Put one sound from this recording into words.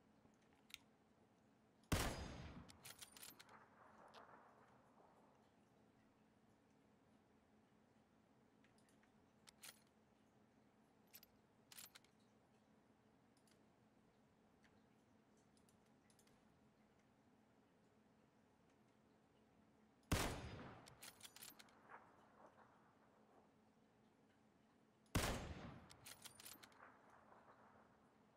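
Metallic clicks come from a rifle being handled.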